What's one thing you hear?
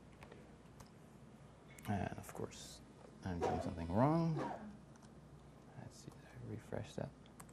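A man types on a laptop keyboard.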